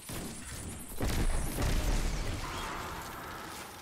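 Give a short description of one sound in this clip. A heavy blast booms and rumbles.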